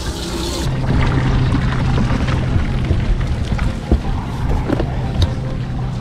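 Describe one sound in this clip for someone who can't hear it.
Footsteps thud on a boat deck.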